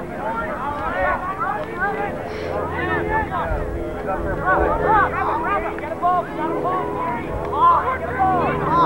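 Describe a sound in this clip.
Young men cheer and shout outdoors.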